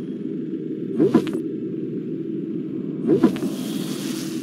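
Short game menu selection sounds whoosh and click twice.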